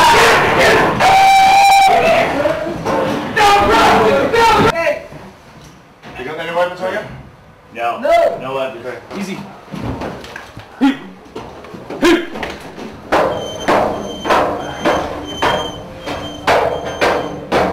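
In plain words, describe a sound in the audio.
Boots clump on metal stairs.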